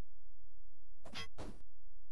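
A sword strikes with a quick slash.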